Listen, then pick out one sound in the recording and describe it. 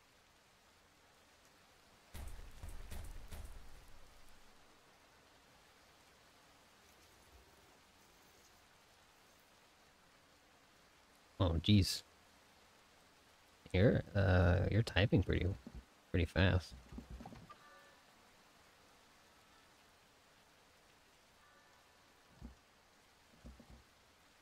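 Rain falls steadily on open water.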